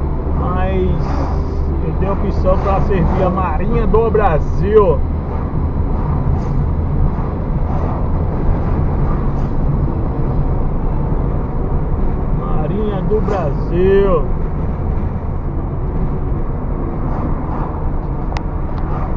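Tyres rumble steadily on the road.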